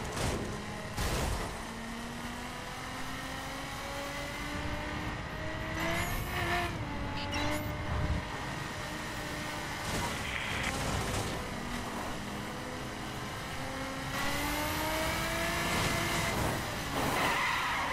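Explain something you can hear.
Tyres splash and hiss over a wet road.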